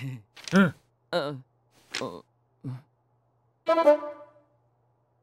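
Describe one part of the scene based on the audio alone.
A young man speaks with animation in short bursts.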